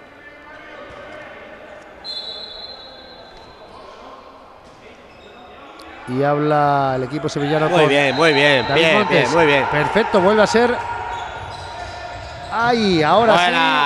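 A ball bounces on a hard indoor court.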